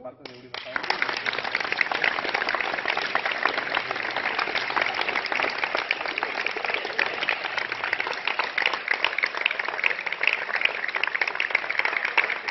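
A small group claps steadily in a large echoing hall.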